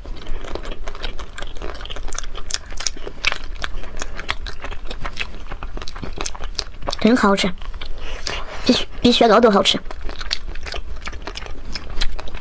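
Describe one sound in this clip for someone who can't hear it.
Crisp food crunches and crackles close by as it is bitten and chewed.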